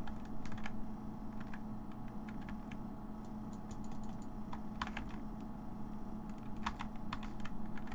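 Footsteps clack on a hard floor.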